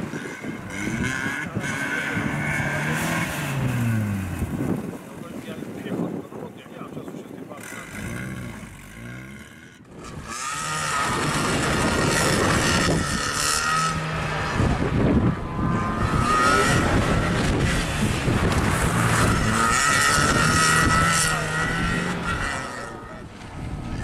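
Tyres squeal on tarmac as a car skids through turns.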